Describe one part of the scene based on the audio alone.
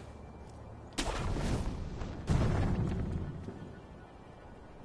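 A heavy thud of a landing rumbles briefly.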